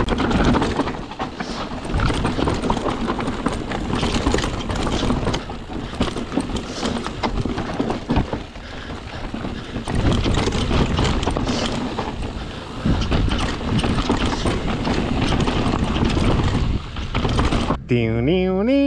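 A bicycle's frame and chain clatter over bumps.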